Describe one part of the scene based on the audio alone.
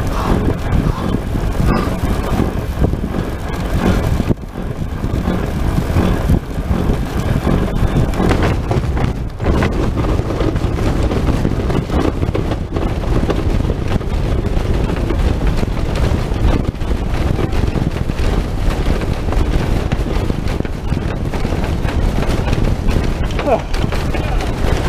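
Wind rushes and buffets past a film-covered cockpit in flight.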